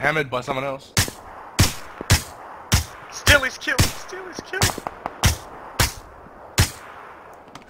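Rifle shots fire in quick succession.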